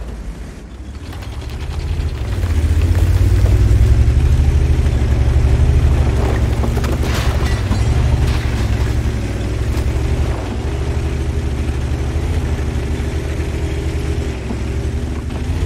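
A tank engine rumbles deeply as the tank drives along.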